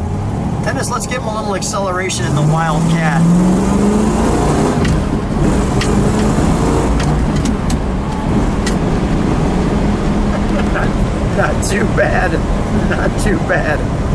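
A car engine rumbles steadily and revs up as the car drives along.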